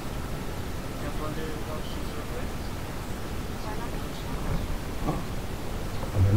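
A young man speaks casually close by.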